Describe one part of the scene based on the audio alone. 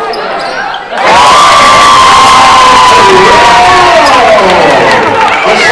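A crowd cheers and roars loudly.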